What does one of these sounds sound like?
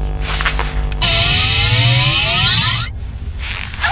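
An electronic alert chime rings out with a sweeping, bright tone.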